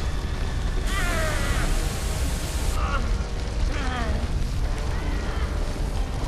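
Lava rumbles low and steadily.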